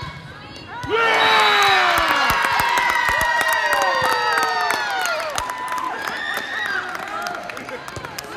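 Young girls cheer and shriek loudly.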